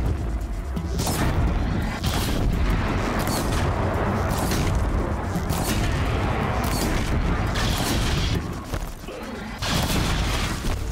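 Sharp fiery blasts burst again and again.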